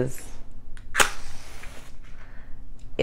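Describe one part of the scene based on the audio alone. A match strikes and flares with a short hiss.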